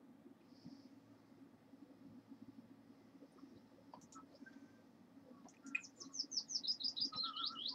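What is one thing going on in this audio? A small garden tool scrapes and digs in soil.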